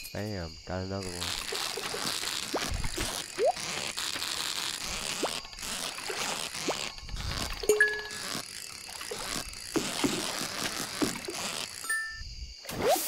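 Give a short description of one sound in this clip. A fishing reel whirs steadily in a game.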